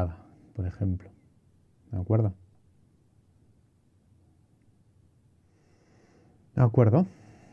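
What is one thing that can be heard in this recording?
A man speaks calmly and closely into a microphone, in short bursts.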